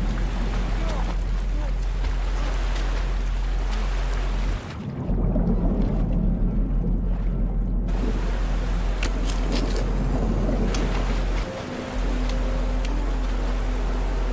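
River rapids churn and splash loudly.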